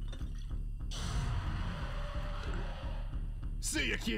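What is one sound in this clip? A character gulps down a drink.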